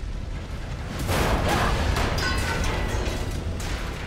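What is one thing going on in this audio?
A loud burst of flames whooshes up.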